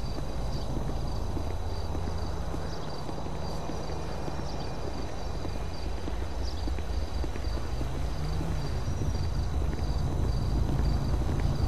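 Footsteps patter steadily on a hard path.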